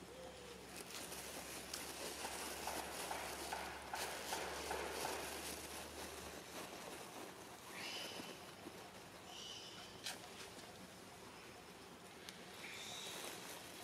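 A monkey chews food close by.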